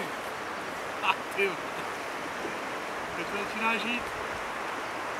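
A fishing reel clicks as line is reeled in.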